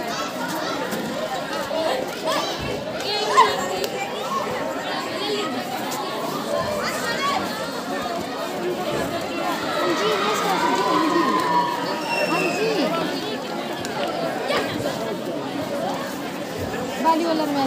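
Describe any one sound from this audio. Bare feet thump and shuffle on the mat.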